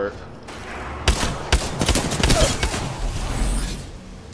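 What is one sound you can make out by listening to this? Rapid gunfire rings out in short bursts.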